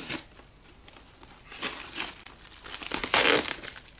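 Scissors snip through plastic.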